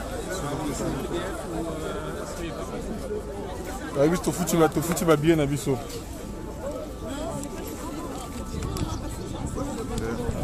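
A crowd of people talk and shout all around, outdoors.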